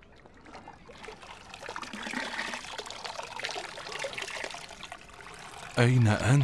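Water pours from a bowl and splashes into a tub.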